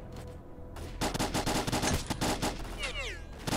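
A rifle fires in rapid shots.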